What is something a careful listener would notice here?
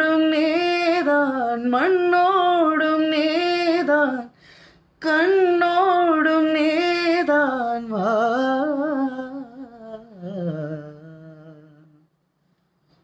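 A young man sings a slow, wavering melody close by.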